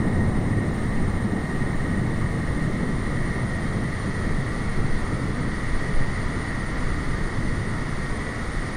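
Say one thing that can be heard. Jet engines idle with a steady roar and a high whine.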